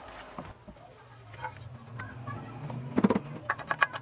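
A cloth rubs against a metal plate.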